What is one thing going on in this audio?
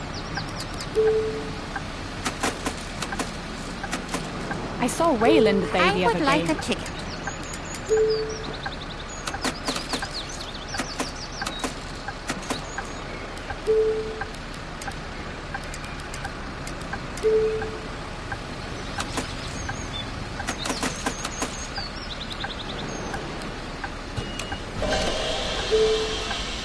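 A ticket machine beeps briefly several times.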